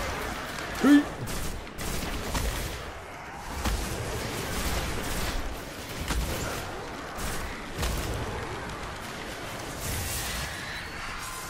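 Gunfire from a game weapon bursts out in rapid shots.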